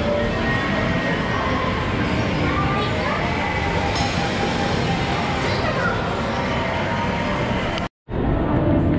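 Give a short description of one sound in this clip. Arcade machines play jingles and electronic beeps all around.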